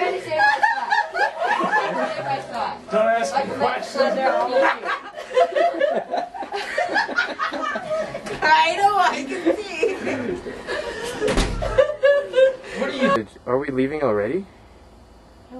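A young woman laughs loudly and close by.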